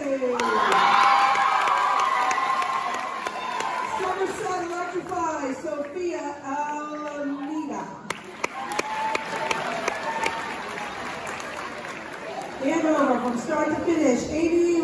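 A choir of young voices sings together in a large echoing hall.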